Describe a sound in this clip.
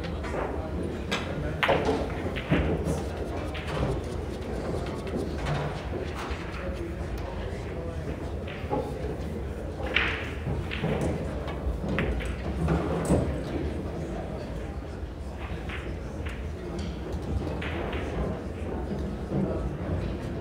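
A crowd of men murmurs quietly in a large room.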